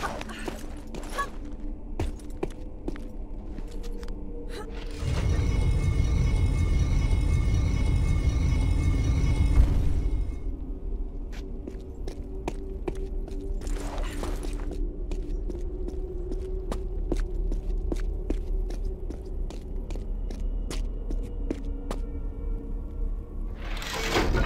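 Quick footsteps tap on a stone floor.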